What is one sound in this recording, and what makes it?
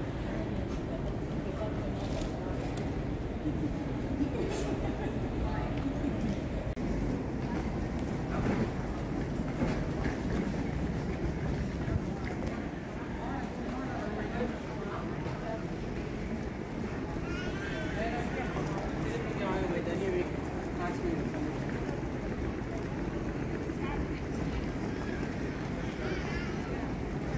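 People talk in a low murmur in a large echoing hall.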